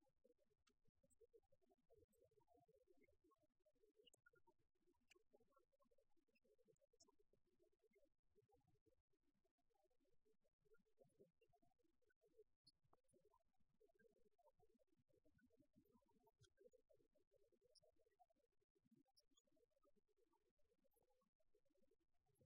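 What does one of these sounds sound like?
Men and women talk quietly at a distance in a large echoing hall.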